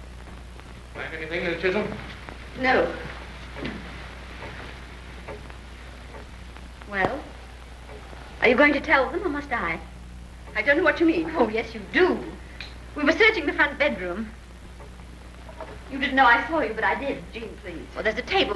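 A woman speaks with animation nearby.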